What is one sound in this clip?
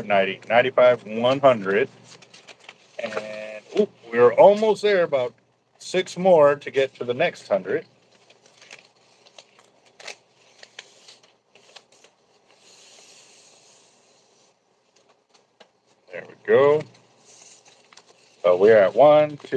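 A plastic strip rustles and crinkles between hands.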